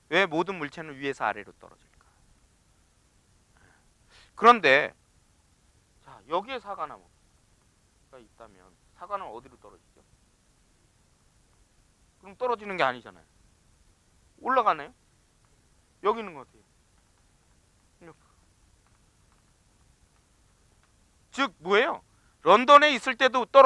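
A man lectures through a microphone in short phrases with pauses.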